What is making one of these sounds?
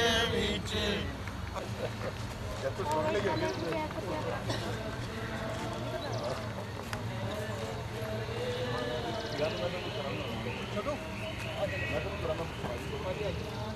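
Several people talk at a distance outdoors.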